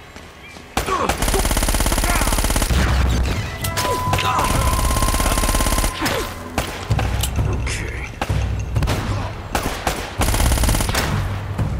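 Automatic gunfire rattles in rapid bursts.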